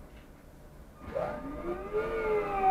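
A bus engine whines higher as the bus pulls away.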